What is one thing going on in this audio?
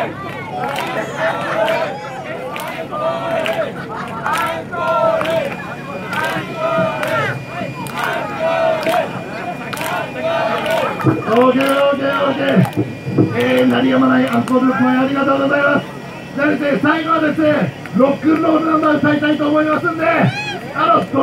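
A crowd of young men and women shouts and cheers loudly outdoors.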